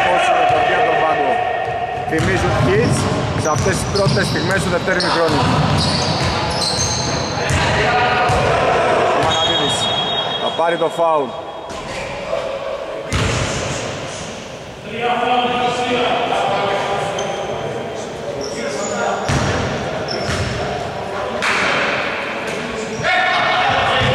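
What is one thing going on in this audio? Young men shout and call out to each other across the echoing gym.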